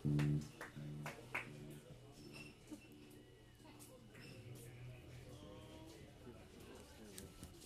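A band plays live music with electric guitars and drums.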